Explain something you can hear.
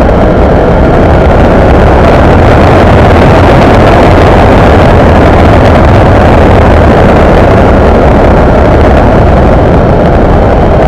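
Wind roars loudly past a moving vehicle.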